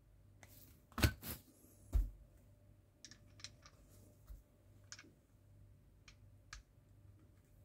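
Small plastic parts click and tick softly as they are fitted together by hand.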